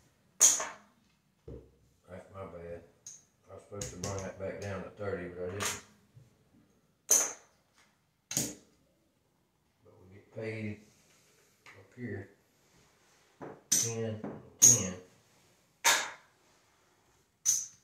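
Casino chips click and clack as they are set down.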